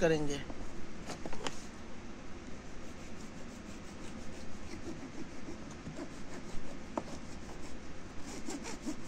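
A hacksaw rasps back and forth through hard plastic.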